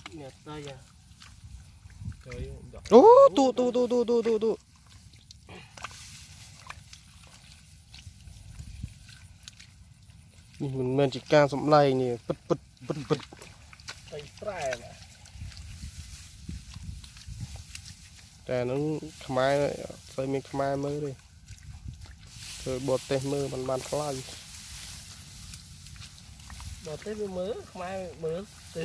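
Hands squelch and slosh through wet mud.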